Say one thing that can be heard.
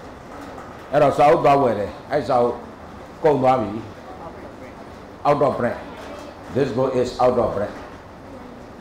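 A middle-aged man speaks in short bursts through a handheld microphone.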